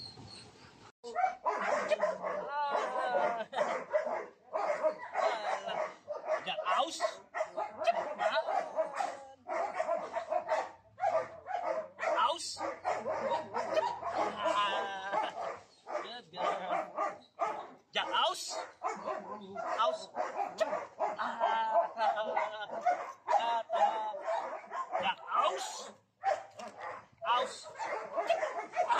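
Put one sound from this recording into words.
A puppy growls as it tugs on a toy.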